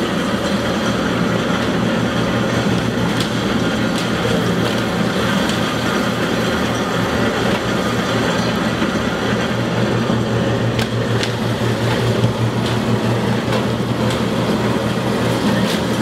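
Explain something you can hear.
Plastic crates knock against a metal edge.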